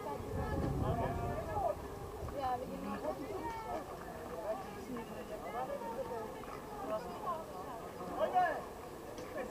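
Young men call out to each other across an open field, far off.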